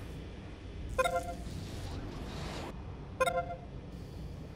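A short electronic chime rings twice.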